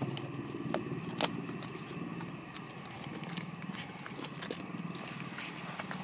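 A dog sniffs and rustles through dry straw up close.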